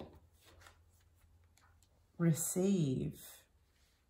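Playing cards slide and tap on a wooden table.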